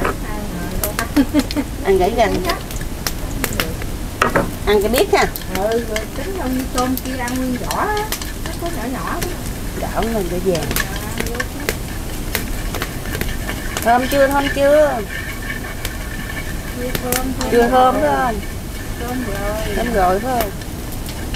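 A middle-aged woman talks calmly nearby.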